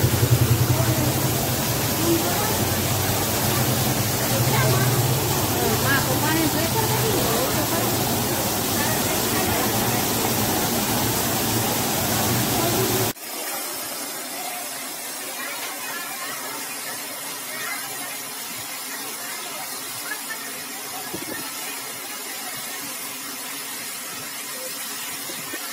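Water gushes and roars loudly from a burst pipe.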